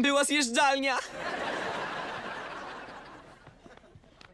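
A teenage boy laughs.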